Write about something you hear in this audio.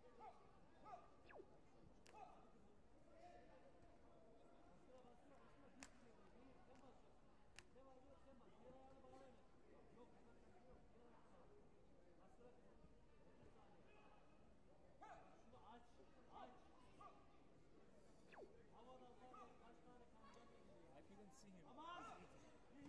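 People shout and cheer from around the hall.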